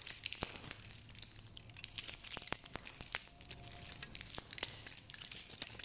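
Plastic capsules rattle and click as they are poured into cupped hands.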